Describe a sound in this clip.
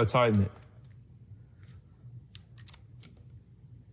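A screwdriver clicks softly as it turns small screws.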